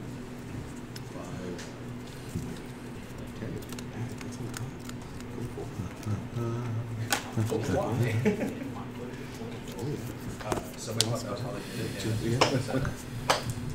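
Playing cards shuffle and riffle in hands.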